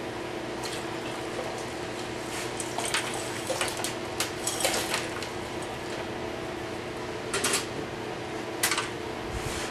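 A metal lid clinks and scrapes against a container.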